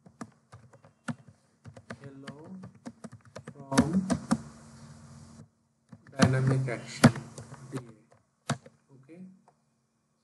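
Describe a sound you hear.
Keys clatter as someone types on a keyboard.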